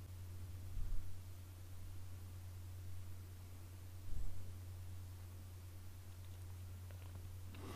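Small animals rustle and scratch in dry leaves on the ground.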